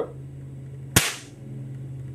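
A grenade's lever snaps open with a sharp metallic click.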